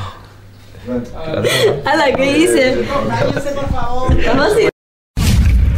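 A young woman laughs and talks with animation.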